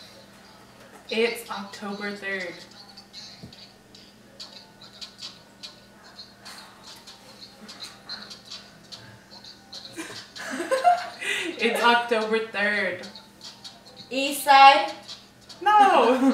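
A second young woman talks and laughs cheerfully close by.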